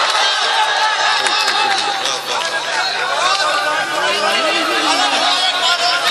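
A man sings through a loudspeaker with strong echo.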